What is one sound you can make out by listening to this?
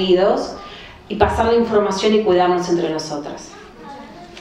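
A woman speaks with animation into a microphone over a loudspeaker.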